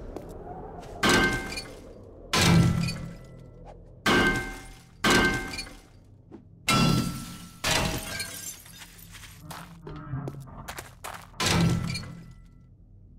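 A metal wrench clangs repeatedly against a car's metal body.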